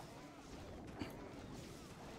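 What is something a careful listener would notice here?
A sharp impact bangs once.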